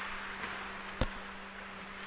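A hockey stick clacks against a puck.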